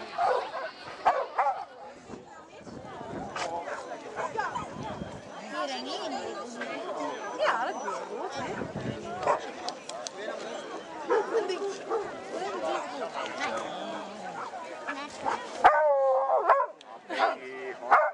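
People chat quietly in the background.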